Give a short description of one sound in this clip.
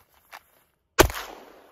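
A pistol fires a single sharp shot outdoors.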